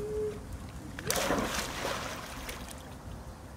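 A child jumps into a pool with a big splash.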